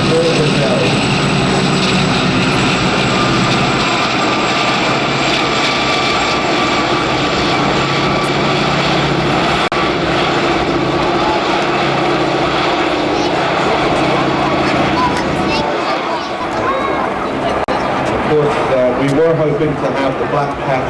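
Helicopter rotors thump steadily overhead.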